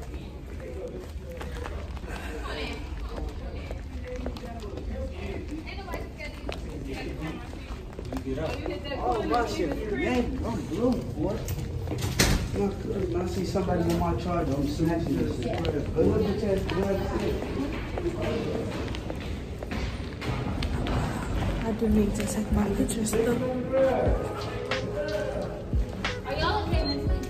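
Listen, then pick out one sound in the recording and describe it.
A young woman talks casually, close to a microphone.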